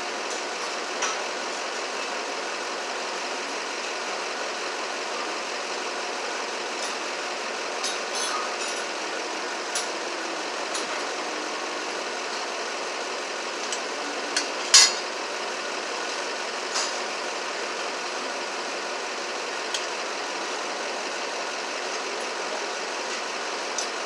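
Metal clinks and knocks sharply now and then.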